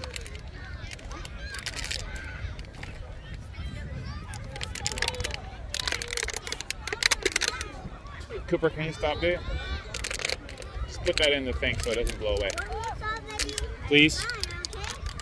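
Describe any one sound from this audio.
Distant children and adults shout and call out across an open field.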